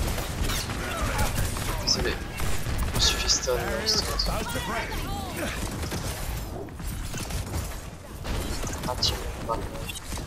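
Game weapons fire in rapid bursts with sharp electric zaps.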